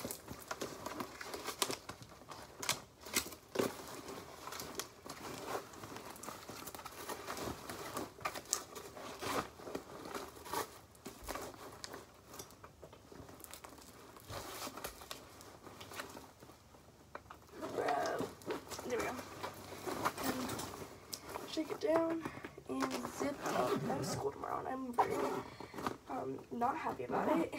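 Items rustle and clatter as they are packed into a bag.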